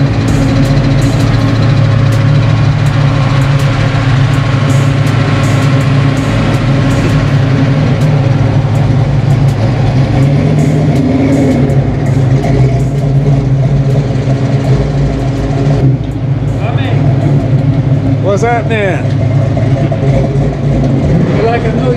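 A car engine rumbles steadily nearby.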